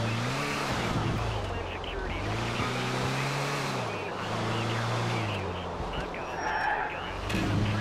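A van engine hums and revs up and down as it drives.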